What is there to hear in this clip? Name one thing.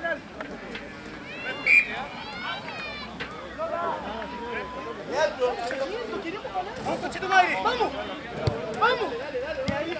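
Rugby players shout to each other across the field.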